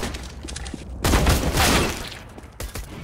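A rifle shot cracks loudly and echoes.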